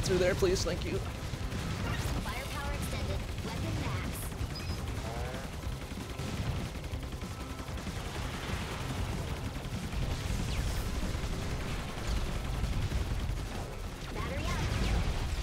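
Rapid gunfire and explosions crackle in a video game.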